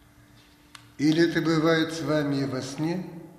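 An elderly man speaks close to the microphone.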